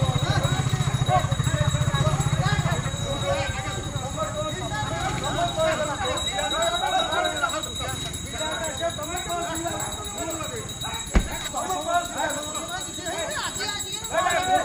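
A crowd of men talk and shout over each other outdoors.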